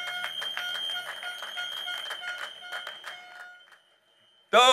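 An audience claps and the applause fades away.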